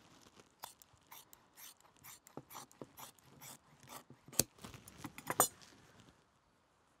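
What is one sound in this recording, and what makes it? Scissors snip through soft leather.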